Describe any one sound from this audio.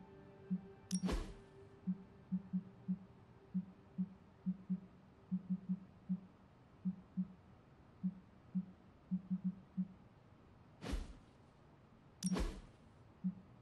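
A quick whoosh sweeps past a few times.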